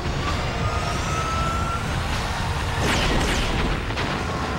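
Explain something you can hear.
A flying craft's engine roars and whooshes past overhead.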